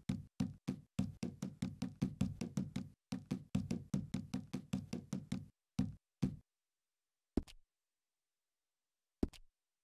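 Quick electronic menu ticks sound in rapid succession.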